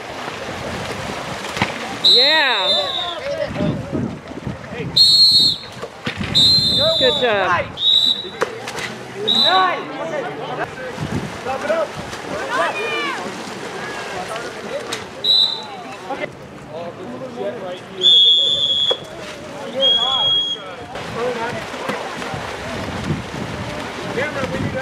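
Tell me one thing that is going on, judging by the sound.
Players shout to each other across the water.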